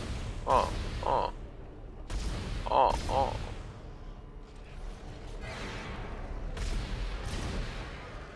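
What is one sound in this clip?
A gun fires in quick bursts.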